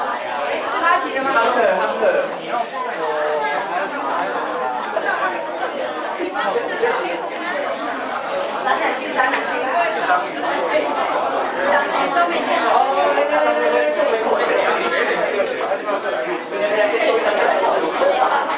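A crowd of men and women chatter all around.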